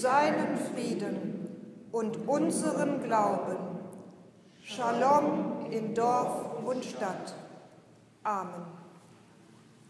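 A middle-aged woman reads aloud calmly into a microphone in an echoing hall.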